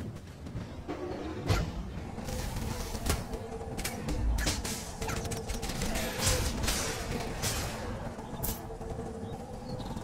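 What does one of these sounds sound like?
Game combat clashes with sharp hits.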